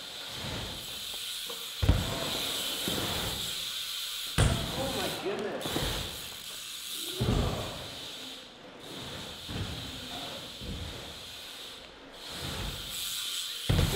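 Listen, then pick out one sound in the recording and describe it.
A bicycle's tyres thump down onto a ramp.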